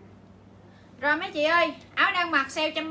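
A young woman speaks loudly with animation, close by.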